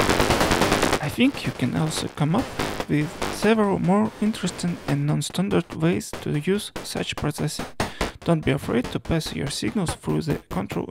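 A modular synthesizer plays short, bubbling pitched notes in a quick, uneven pattern.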